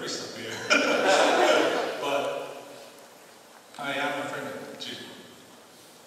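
A middle-aged man speaks through a microphone in a large hall.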